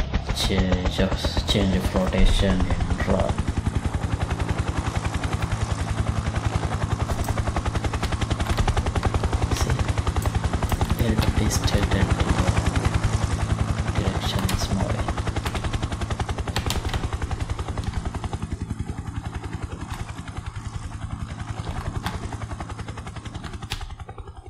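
An attack helicopter's rotor blades thump rapidly.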